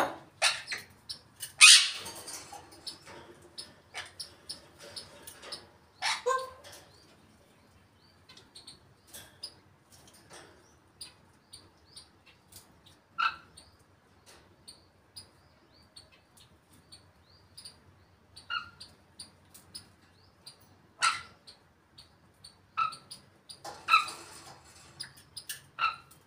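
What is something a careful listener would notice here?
A parrot squawks and whistles close by.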